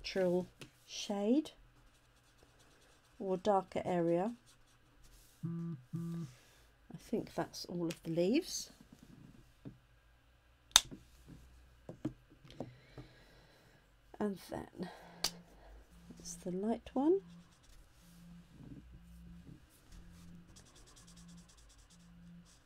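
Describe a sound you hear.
A marker scratches softly on paper.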